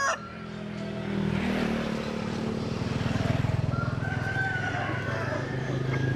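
A rooster flaps its wings.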